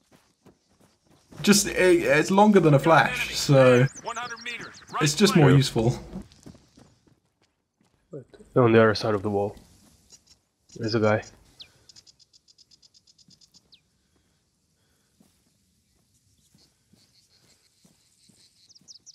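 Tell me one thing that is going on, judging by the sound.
Footsteps crunch on gravel and dry ground.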